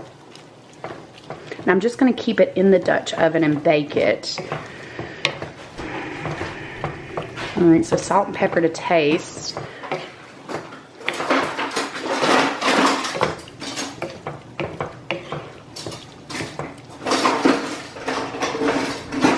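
Food sizzles gently in a hot pan.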